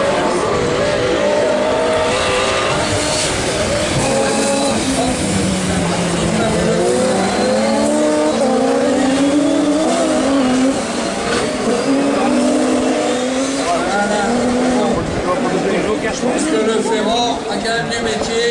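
Rally car engines roar and rev loudly as the cars race past.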